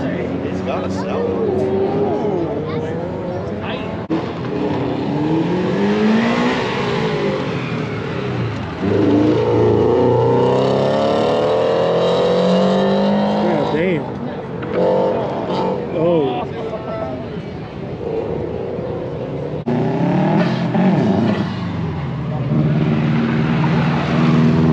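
Tyres squeal on pavement.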